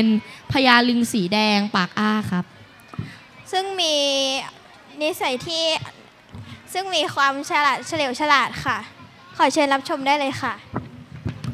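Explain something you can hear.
A girl speaks clearly through a microphone and loudspeakers.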